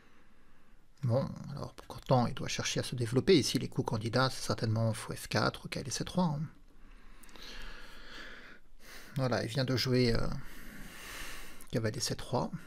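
A man speaks calmly and with animation close to a microphone.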